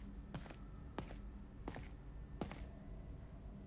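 Footsteps run across a hard floor and come to a stop.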